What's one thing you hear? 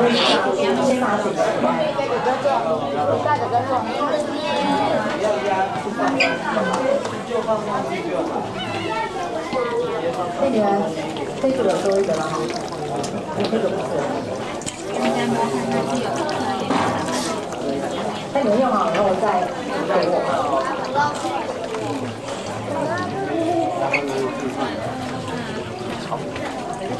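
Water sloshes and drips as hands move through it.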